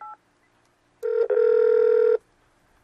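A loud ringing tone sounds briefly through a telephone handset.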